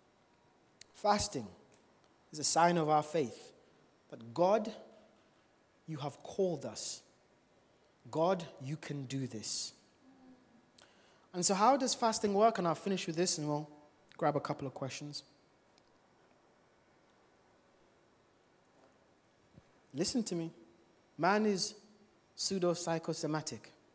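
A man speaks with animation into a microphone, heard over loudspeakers in a large room, with pauses between phrases.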